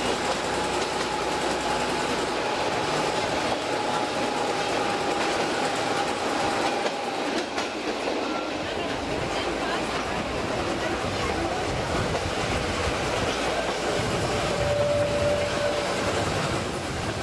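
Train wheels squeal on a curve.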